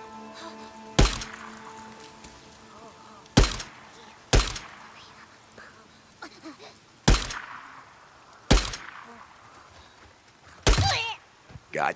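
A pistol fires single loud shots that echo outdoors.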